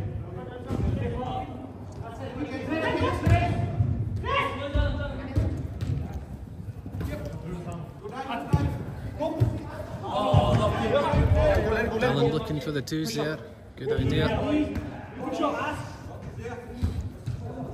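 Young men shout and call to each other in a large echoing hall.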